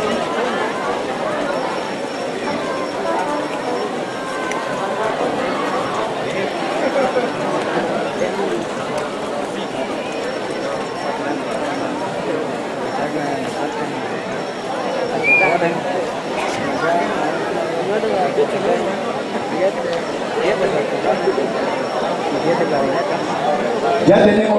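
A marching band plays brass and saxophones outdoors.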